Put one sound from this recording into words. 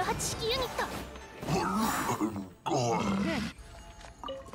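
A magical swoosh sweeps past with bright chiming tones.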